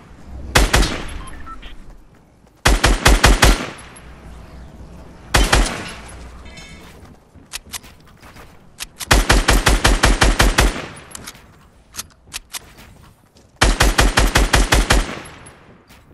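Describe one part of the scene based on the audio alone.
Rapid bursts of gunfire ring out in quick volleys.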